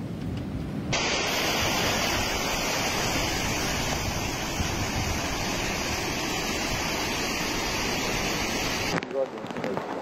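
Floodwater rushes and roars nearby.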